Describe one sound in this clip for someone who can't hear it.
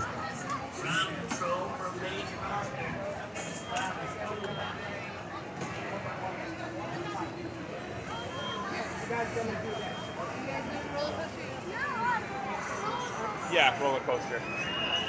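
Young children shout and squeal nearby.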